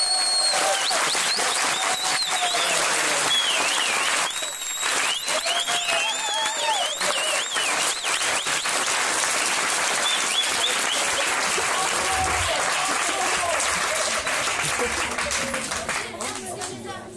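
A large crowd cheers and shouts loudly close by.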